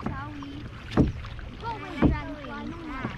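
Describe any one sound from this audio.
A paddle knocks against the side of a kayak.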